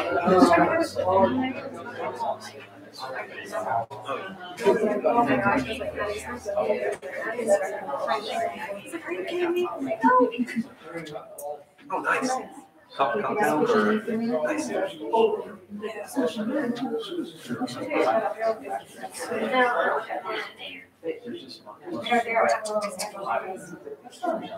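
Several adults talk with one another at a distance in a large echoing room.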